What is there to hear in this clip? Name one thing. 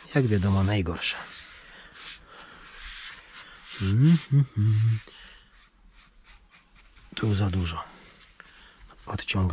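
A cloth rubs and squeaks over a steering wheel.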